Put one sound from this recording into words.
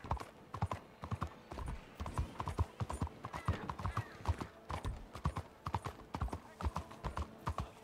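Horse hooves clop steadily on cobblestones.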